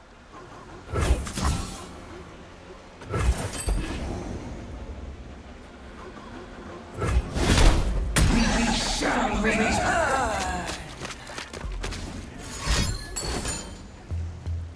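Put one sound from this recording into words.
Magical game sound effects whoosh and crackle in sudden bursts.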